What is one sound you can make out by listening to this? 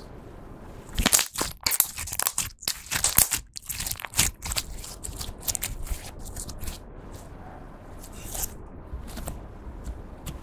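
Slime squelches and crackles as hands squeeze it.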